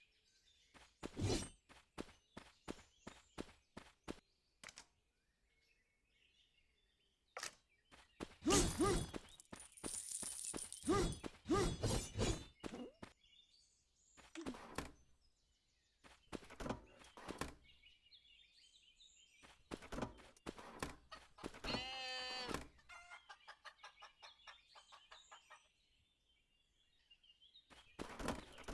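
Quick light footsteps patter along.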